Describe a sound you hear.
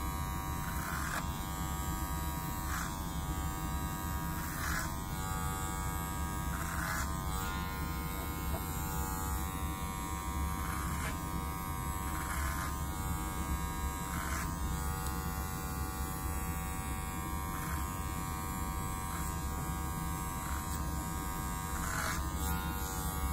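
Electric hair clippers snip through hair in short strokes.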